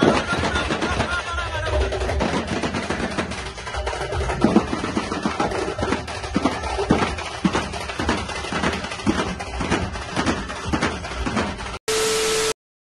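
A drum band pounds loudly and fast on many drums.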